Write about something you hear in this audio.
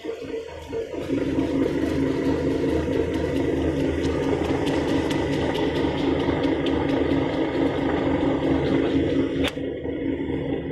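Moist grainy material pours from a metal chute with a soft rustle.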